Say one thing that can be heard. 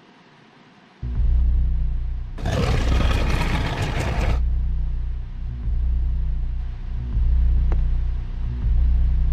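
A heavy wooden cabinet scrapes and rumbles slowly across a floor.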